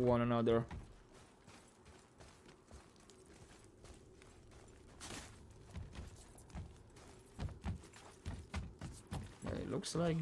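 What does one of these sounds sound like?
Footsteps crunch on snow and wood.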